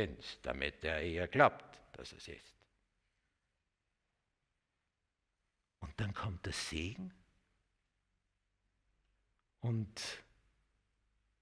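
An elderly man speaks with animation into a close microphone, with long pauses.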